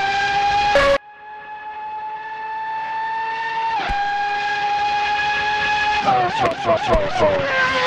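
A racing car engine hums steadily from a distance.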